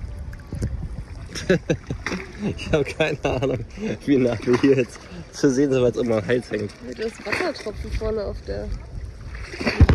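Water splashes around people wading.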